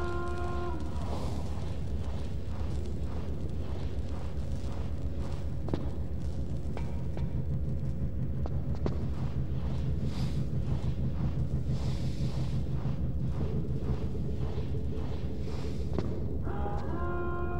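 Footsteps clang quickly on a metal floor.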